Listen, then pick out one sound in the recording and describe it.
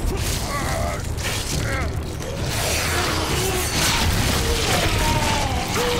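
A blade tears wetly into flesh.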